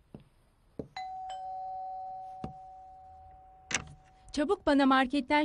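A doorbell chimes.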